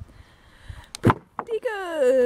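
A heavy wooden slab thuds onto the ground.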